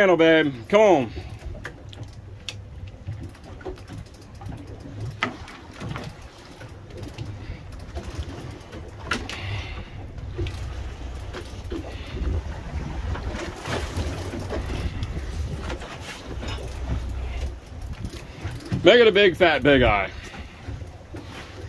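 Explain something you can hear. Wind rumbles over the boat outdoors.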